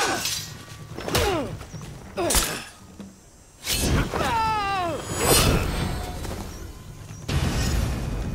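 Steel blades clash and strike sharply.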